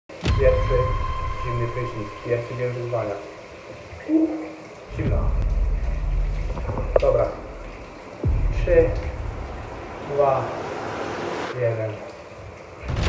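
A young man speaks with animation close by, in a small echoing room.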